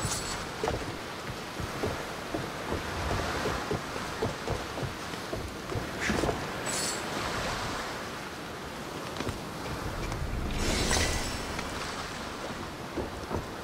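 Footsteps thud on wooden planks.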